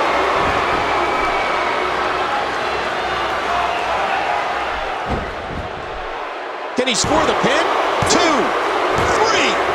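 A large arena crowd cheers.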